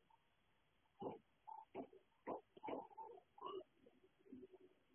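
A bowl scrapes and knocks on a wooden floor.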